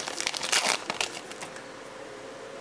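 A foil wrapper crinkles and tears.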